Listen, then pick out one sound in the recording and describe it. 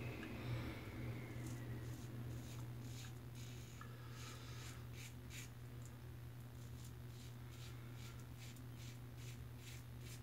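A razor scrapes across stubble in short strokes.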